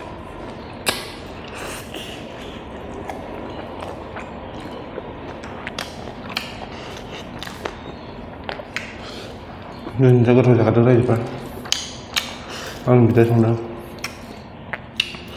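A man chews food with wet smacking sounds close to a microphone.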